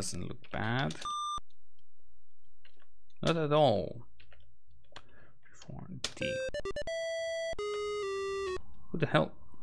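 A retro computer game plays a quick run of electronic beeps.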